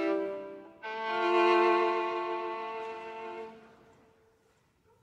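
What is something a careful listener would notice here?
A violin plays a slow, sustained melody that rings out in a reverberant room.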